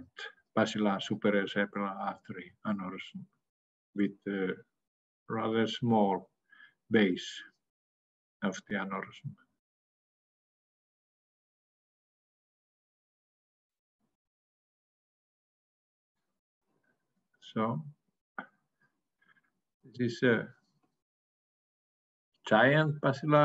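A middle-aged man talks calmly through an online call.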